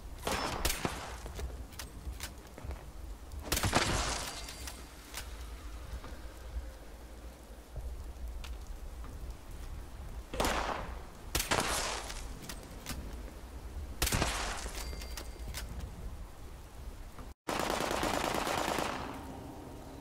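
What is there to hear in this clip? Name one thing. A rifle fires several shots.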